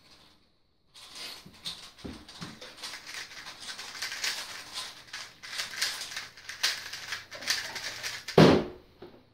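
Puzzle cubes click and rattle rapidly as they are turned.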